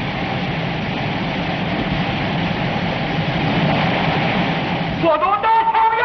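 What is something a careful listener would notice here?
Water rushes and splashes loudly over rocks.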